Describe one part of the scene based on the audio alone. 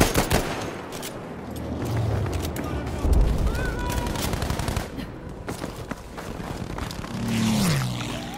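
Rifle shots crack sharply, one after another.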